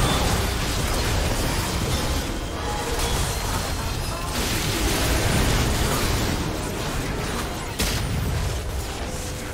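Game spells whoosh and blast in a busy fight.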